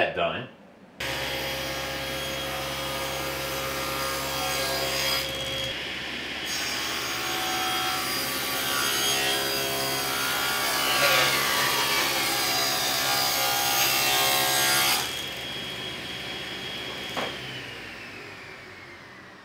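A table saw motor starts and runs with a steady whine, then winds down.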